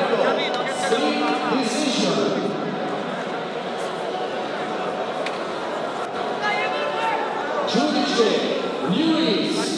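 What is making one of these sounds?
A crowd cheers and chatters loudly in a large echoing hall.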